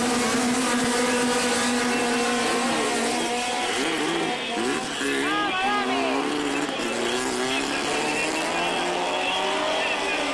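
Racing car engines roar and whine, rising and falling in pitch.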